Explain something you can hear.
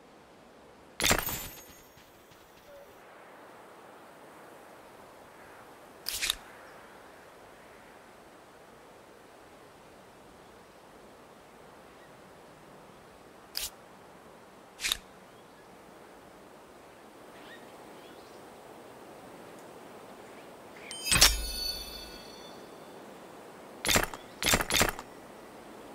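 Short game interface clicks and chimes sound now and then as menus open.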